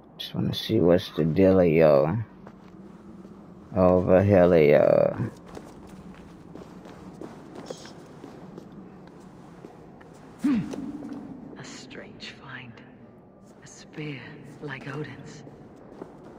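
Footsteps scuff and tap on rocky ground.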